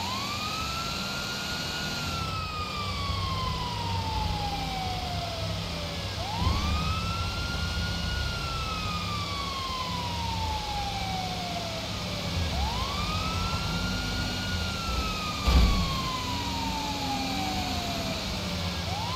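A siren wails, rising and slowly falling over and over.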